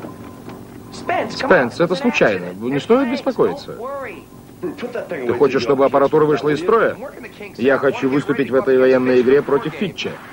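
A man speaks calmly into a headset microphone.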